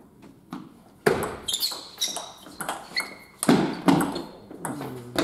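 A ping-pong ball clicks back and forth off paddles and a table in an echoing hall.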